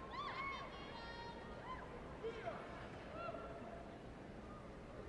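A crowd cheers and whistles in a large arena.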